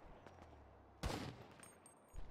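A gunshot rings out.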